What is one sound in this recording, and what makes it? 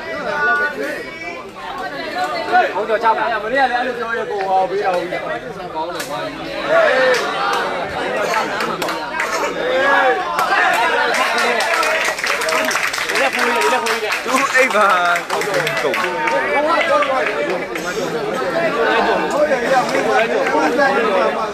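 A crowd of men and women chatters and calls out loudly outdoors.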